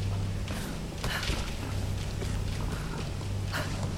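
Hands and feet knock on a metal ladder during a climb.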